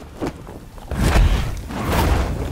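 A heavy body crashes hard onto the ground.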